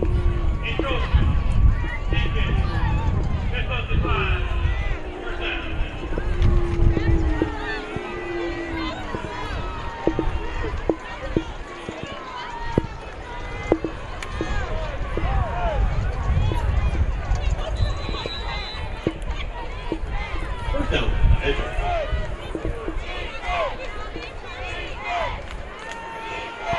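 Young men shout and call out across an open field outdoors.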